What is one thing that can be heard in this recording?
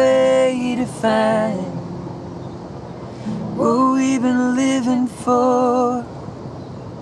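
A man sings close by.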